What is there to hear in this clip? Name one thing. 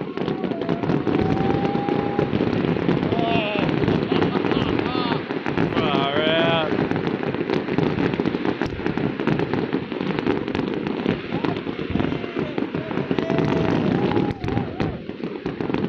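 Fireworks bang and crackle in the distance outdoors.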